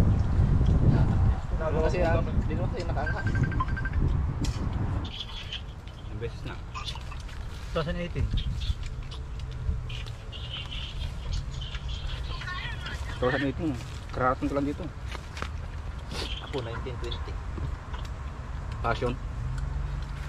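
Young men talk and laugh casually close by.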